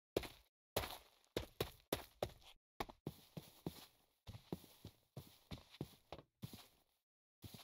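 Quick footsteps patter on grass.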